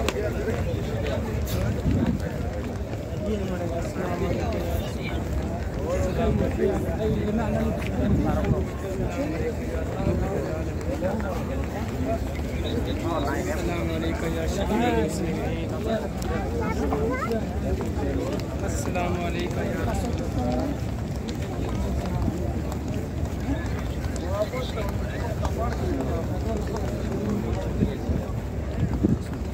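Footsteps shuffle on stone pavement.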